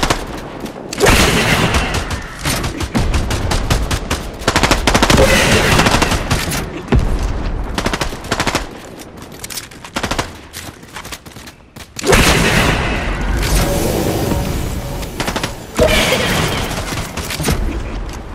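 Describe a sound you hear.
A launcher fires rockets with heavy thumps.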